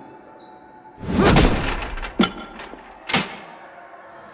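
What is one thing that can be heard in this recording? A heavy mallet slams down on a strength tester with loud bangs.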